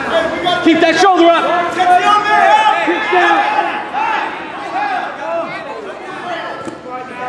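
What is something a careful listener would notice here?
Several men and women shout and cheer loudly in a large echoing hall.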